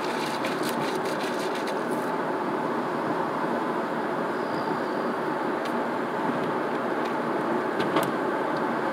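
A car drives at moderate city speed on asphalt, its tyre and road noise heard from inside the car.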